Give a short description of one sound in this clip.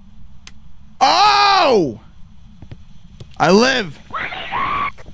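A young man shouts loudly and excitedly into a close microphone.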